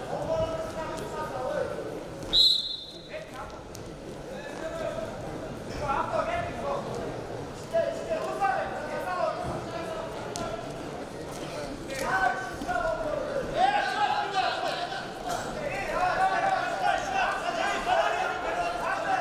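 A crowd in a large hall shouts and cheers.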